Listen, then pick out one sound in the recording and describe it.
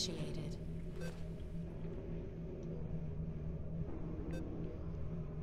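An electronic terminal gives short beeps.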